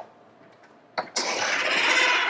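A door latch clicks open.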